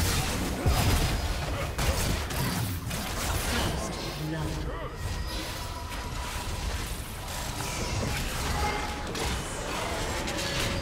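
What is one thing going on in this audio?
Spell effects crackle and whoosh in a game fight.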